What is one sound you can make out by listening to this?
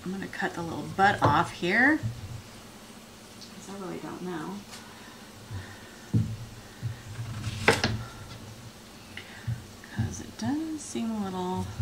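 A knife chops through an onion on a cutting board.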